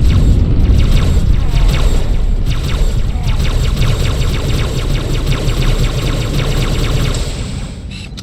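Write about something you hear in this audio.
Energy blasts crackle and burst in quick succession.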